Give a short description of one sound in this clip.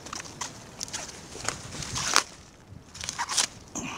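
A crisp stem snaps as a cabbage head is broken off.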